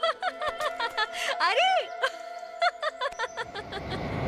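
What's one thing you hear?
A young woman laughs happily nearby.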